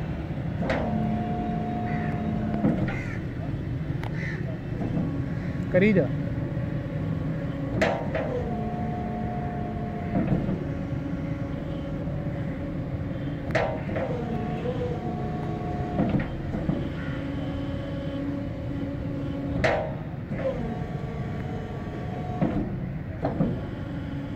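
A road barrier clunks as it stops moving.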